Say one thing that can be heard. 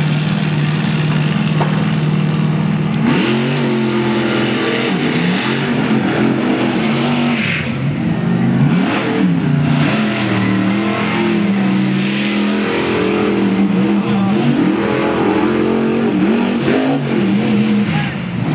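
A monster truck engine roars and revs hard, rising and falling.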